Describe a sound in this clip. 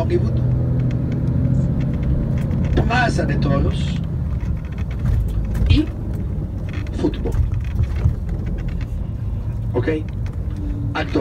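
A vehicle engine rumbles low and steady while driving along a road.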